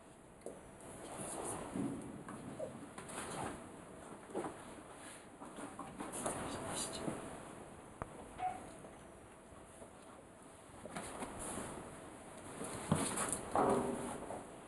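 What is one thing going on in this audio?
A man talks softly to a dog nearby.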